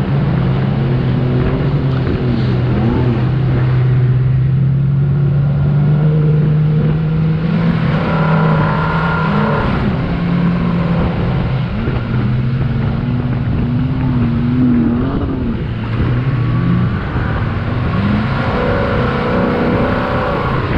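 Tyres churn through loose sand.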